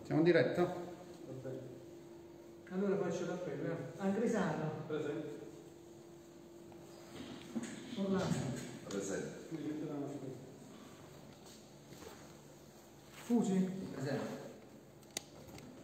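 An elderly man speaks calmly in a room with some echo.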